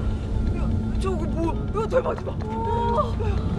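A man exclaims in surprise nearby.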